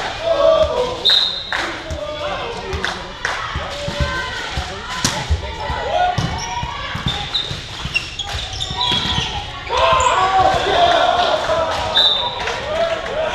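Sneakers squeak on the hall floor.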